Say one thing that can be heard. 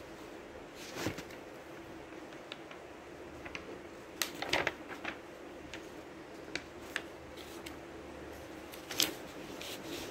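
Paper rustles and flaps as pages are handled.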